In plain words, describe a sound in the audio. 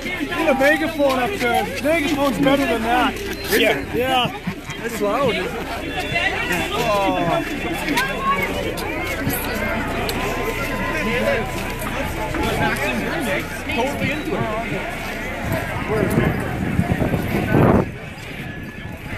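A crowd of men and women shouts and chants outdoors.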